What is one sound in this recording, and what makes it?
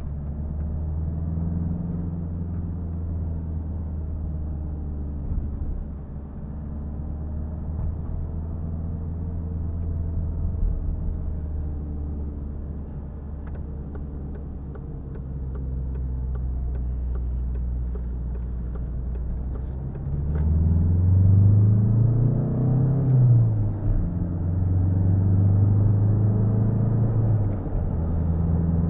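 A car engine hums steadily inside the cabin and revs up as the car speeds up.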